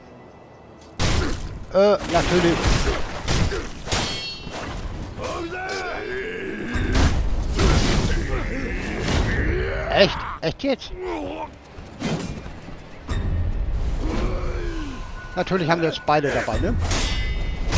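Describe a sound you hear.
Swords clash and ring sharply, again and again.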